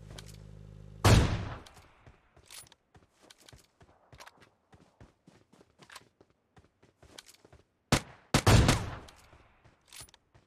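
A sniper rifle fires loud, booming shots that echo away.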